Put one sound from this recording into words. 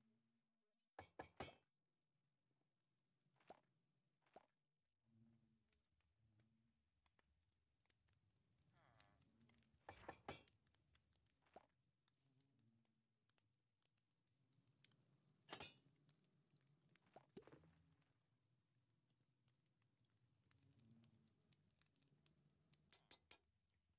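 Game menu items click softly as they are moved.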